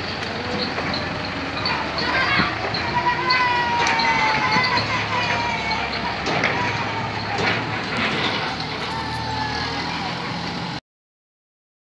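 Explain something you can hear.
A tractor engine rumbles steadily close by as it pulls a trailer.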